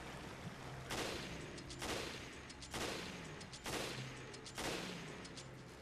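A gun fires single loud shots.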